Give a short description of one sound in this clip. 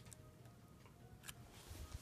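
A candy wrapper crinkles in a hand.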